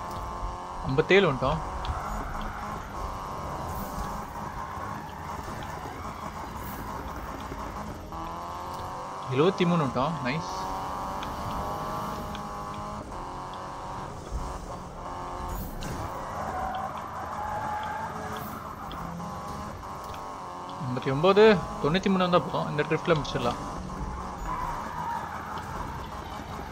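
A car engine roars at high revs.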